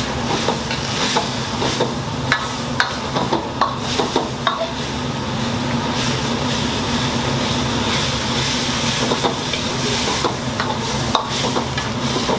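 Meat sizzles and crackles in a hot pan.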